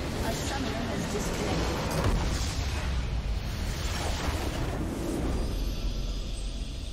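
A massive explosion booms and rumbles.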